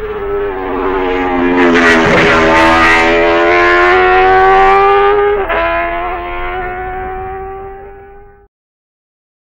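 A racing motorcycle engine roars loudly at high revs, then fades away.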